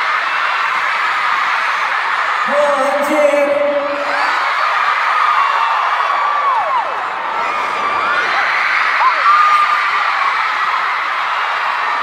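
A large crowd screams and cheers loudly in a big echoing arena.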